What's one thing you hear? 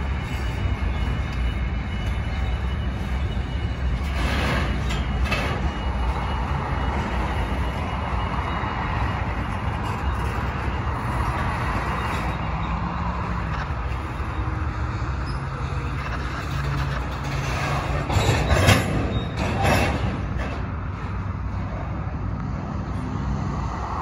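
A long freight train rumbles steadily past, close by.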